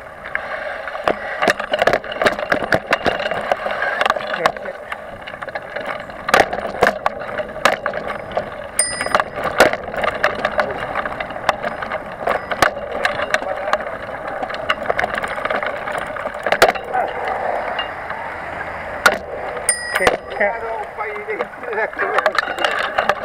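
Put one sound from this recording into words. A bicycle rattles and clatters over a bumpy dirt trail.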